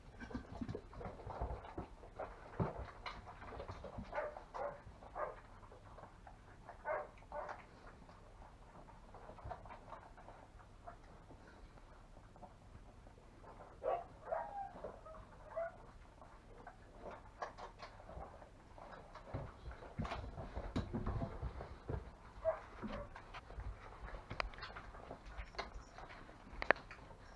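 A dog licks and nuzzles puppies with soft wet sounds.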